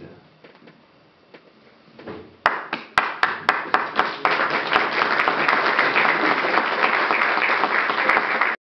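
A piano plays loud, struck chords that build into a fast, dense passage.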